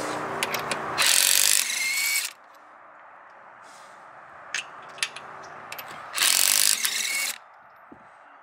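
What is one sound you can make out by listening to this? A cordless impact wrench buzzes and rattles in short loud bursts.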